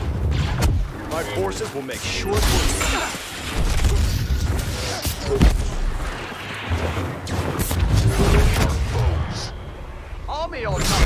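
Lightsabers hum and buzz as they swing.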